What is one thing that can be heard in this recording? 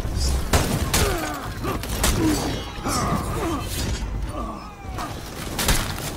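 Warriors grunt and shout as they fight.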